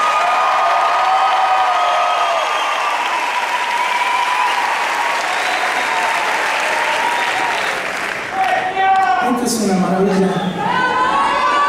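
A live band plays loudly through loudspeakers in a large echoing hall.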